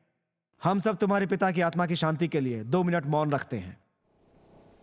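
An elderly man speaks firmly and with animation.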